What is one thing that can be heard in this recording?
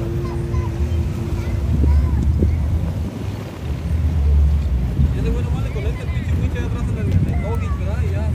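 Water splashes and churns as a truck drives through a river.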